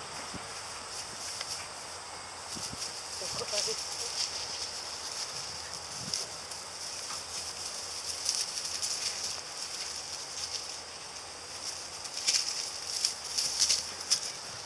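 Dogs rustle through tall grass as they run and play.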